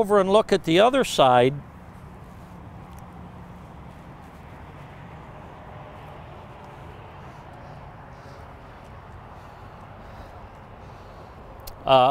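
An elderly man speaks calmly and close by through a clip-on microphone.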